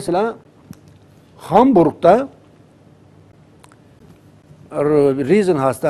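A middle-aged man speaks calmly into a clip-on microphone, with pauses.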